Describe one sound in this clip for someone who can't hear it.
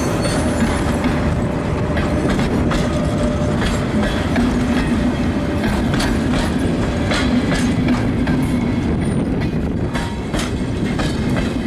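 A passenger train rumbles past close by, with a steady low roar.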